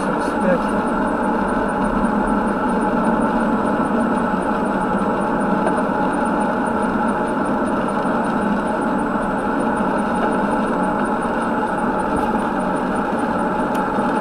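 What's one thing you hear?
Tyres roar steadily on a wet road from inside a moving car.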